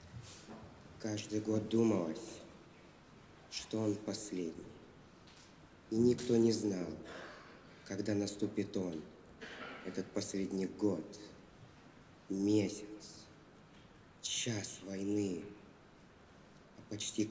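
A young man recites into a microphone in a large echoing hall, with pauses between lines.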